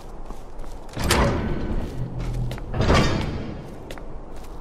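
A heavy door creaks and thuds shut.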